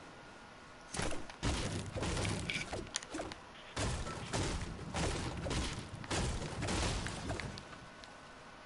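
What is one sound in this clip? A pickaxe strikes and breaks through a roof.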